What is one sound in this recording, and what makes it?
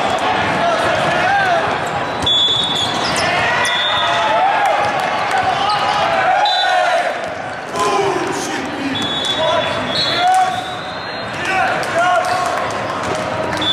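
A crowd of spectators chatters in a large echoing hall.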